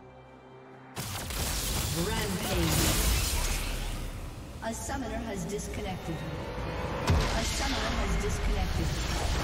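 Magic spells whoosh and crash in a fast fight.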